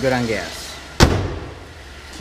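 A car hood slams shut with a loud thud.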